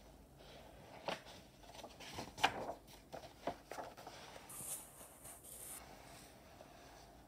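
Paper pages rustle as a book's page is turned.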